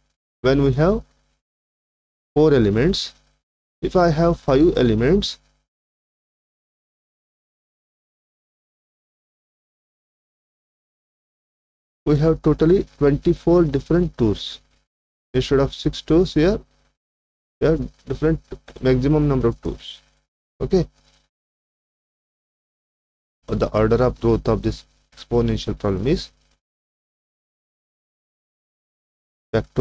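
A man speaks calmly and steadily into a close microphone, with pauses.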